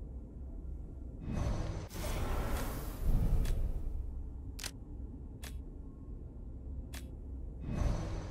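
Short soft clicks sound as a weapon menu is scrolled.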